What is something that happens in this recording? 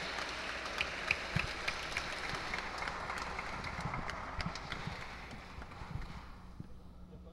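A crowd applauds in a large echoing hall, then the clapping fades away.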